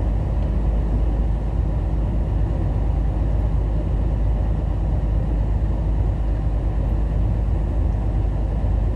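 Tyres roll on a wet highway with a steady hum.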